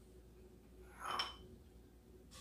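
A metal spoon clinks against a pot.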